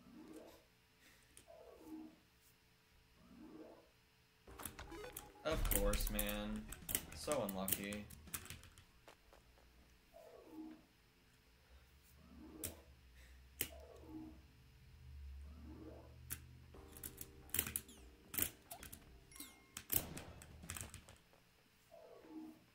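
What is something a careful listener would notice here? Video game music plays with quick sliding tones.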